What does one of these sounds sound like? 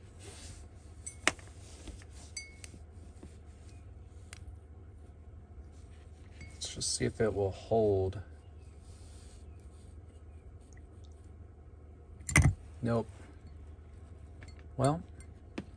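Metal parts clink lightly against a glass.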